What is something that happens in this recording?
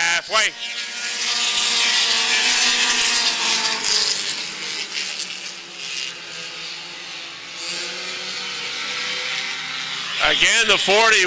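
Racing car engines roar loudly as the cars speed around the track.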